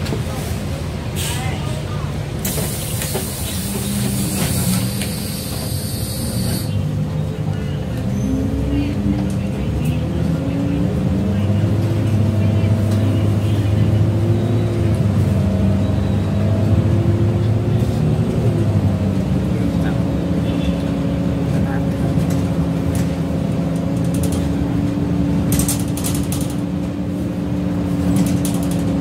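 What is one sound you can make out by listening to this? A bus engine hums and whines as it changes gear, heard from inside.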